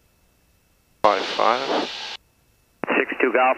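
A man speaks over a headset intercom.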